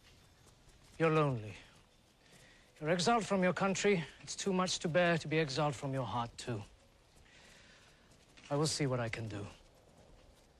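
An older man answers in a low, measured voice, close by.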